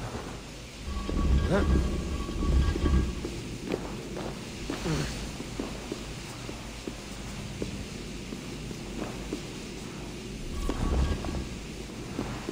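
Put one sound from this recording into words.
A heavy stone block grinds and rumbles as it is pushed across a stone floor.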